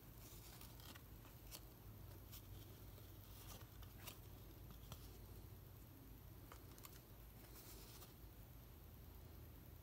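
Trading cards rustle and slide against each other as they are flipped through by hand.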